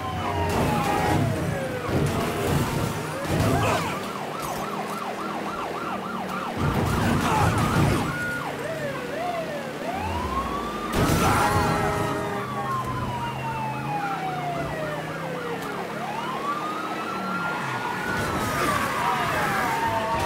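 A car engine roars steadily at speed.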